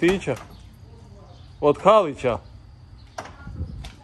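A van door latch clicks.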